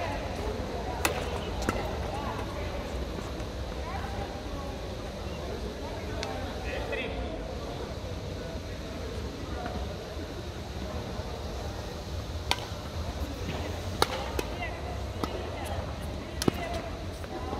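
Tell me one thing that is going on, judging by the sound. Badminton rackets hit a shuttlecock with sharp pops in a large echoing hall.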